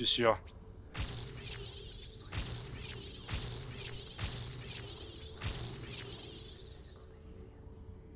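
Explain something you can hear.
Electronic menu sounds whoosh and chime repeatedly.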